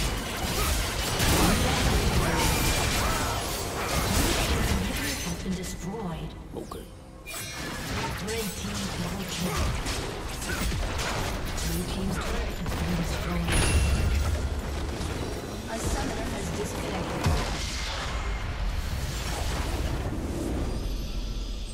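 Game spells and attacks crackle and boom in a fast battle.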